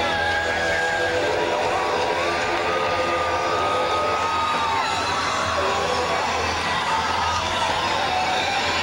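A distorted electric guitar plays a loud wailing solo through big amplifiers.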